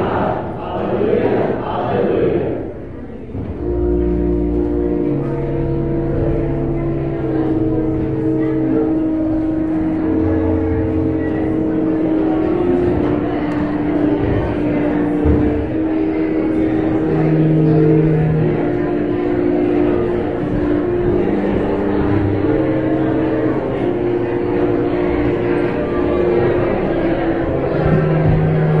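A crowd of people chat and murmur in an echoing hall.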